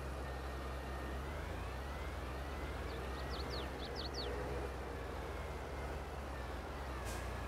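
Gravel crunches under tractor tyres.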